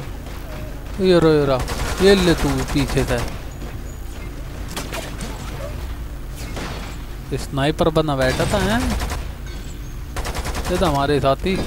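Gunfire bursts in rapid shots.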